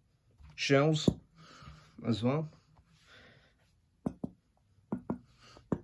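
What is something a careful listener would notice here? A metal helmet is handled and knocks lightly.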